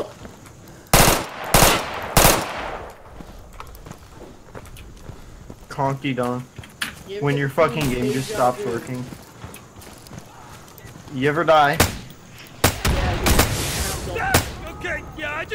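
Loud rifle shots ring out close by.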